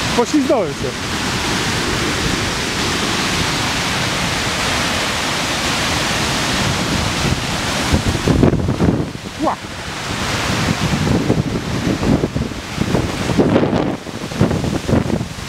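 A waterfall roars and crashes close by.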